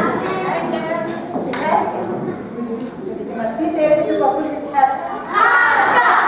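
A woman speaks loudly and dramatically in a large echoing hall.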